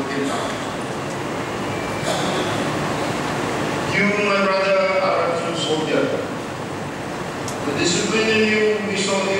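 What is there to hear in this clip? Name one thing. A man speaks formally into a microphone over loudspeakers in a large echoing hall.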